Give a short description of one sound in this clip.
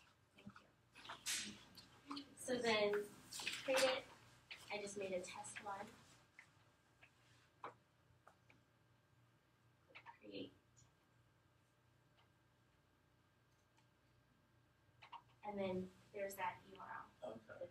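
A young woman speaks calmly nearby, with pauses.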